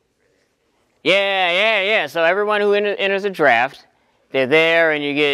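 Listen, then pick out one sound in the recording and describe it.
A young man sings loudly and expressively close by.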